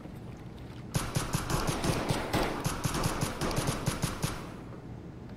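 An automatic rifle fires rapid bursts that echo through a large hall.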